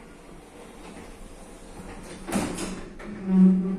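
Elevator doors slide shut with a thud.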